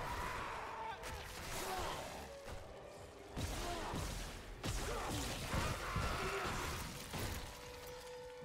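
A weapon fires sharp shots.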